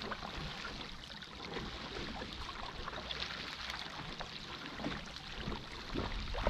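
Wind blows across open water.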